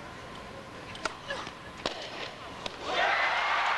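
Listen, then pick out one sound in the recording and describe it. A tennis ball is struck sharply back and forth by rackets in a large arena.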